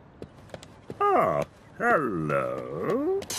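A cartoon man mumbles and grunts in a high, wobbly voice.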